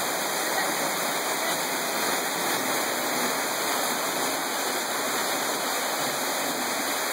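A waterfall splashes steadily onto rocks nearby.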